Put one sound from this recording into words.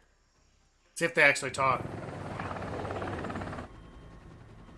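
A helicopter's rotor thuds and roars overhead.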